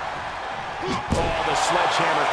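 A stick strikes a wrestler with a sharp crack.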